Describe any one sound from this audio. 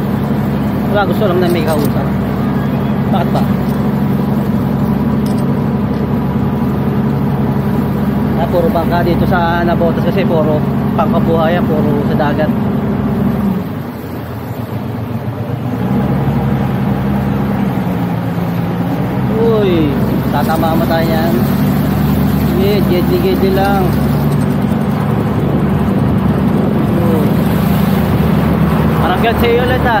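A young man talks loudly over an engine, close by.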